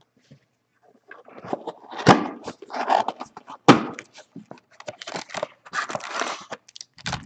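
A cardboard box rustles and scrapes as it is torn open.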